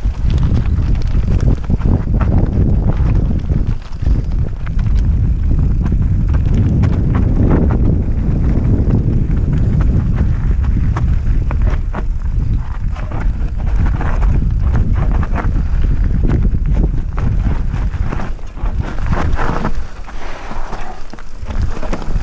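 Bicycle tyres crunch and rattle over a rough stony trail.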